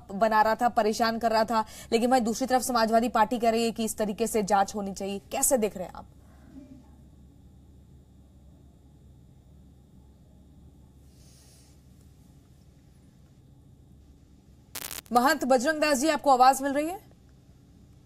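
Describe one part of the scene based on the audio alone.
A woman speaks with animation into a microphone, as a news presenter.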